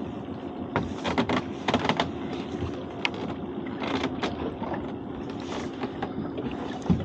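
A trap knocks against the side of a boat.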